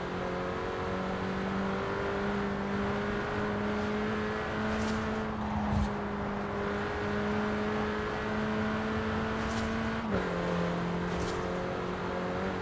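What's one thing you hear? A car engine hums steadily at high speed, shifting gear briefly.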